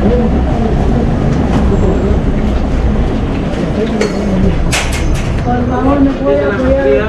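Men and women chatter nearby in a busy crowd.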